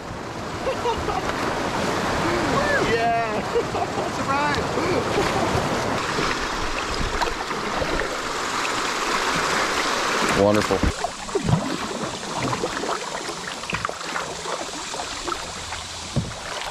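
A kayak paddle splashes in the water.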